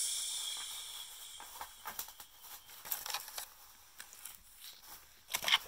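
Fingertips tap and brush on a wooden floor.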